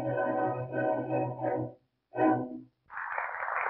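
An orchestra plays a loud closing chord.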